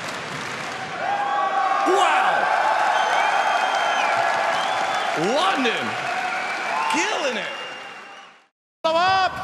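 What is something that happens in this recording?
A large crowd cheers loudly.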